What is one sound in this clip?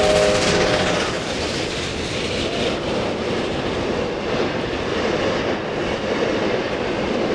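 Train carriages rumble and clatter past on the rails.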